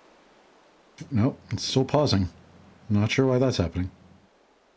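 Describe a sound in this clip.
A man talks animatedly into a microphone, close by.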